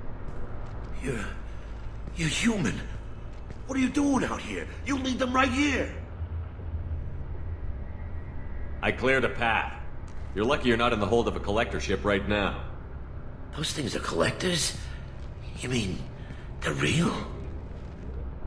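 A young man speaks with alarm, his voice rising.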